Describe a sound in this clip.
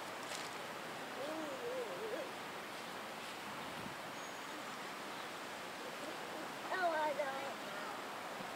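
A young child calls out briefly outdoors.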